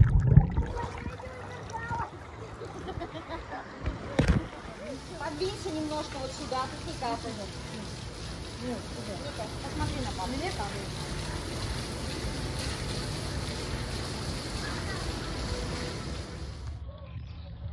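Women talk and laugh outdoors.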